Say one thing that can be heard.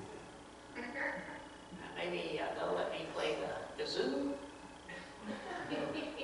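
A middle-aged man speaks calmly to an audience in a room with a slight echo.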